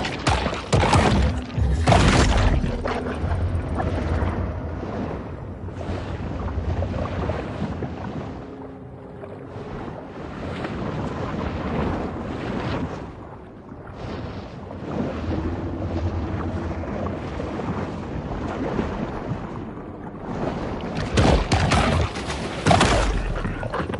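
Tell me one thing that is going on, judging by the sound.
Water splashes loudly as a creature thrashes at the surface.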